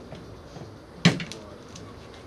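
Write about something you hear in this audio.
A large plastic panel thuds down onto a table.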